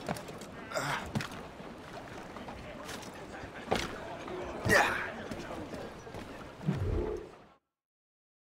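Footsteps thud on a wooden deck.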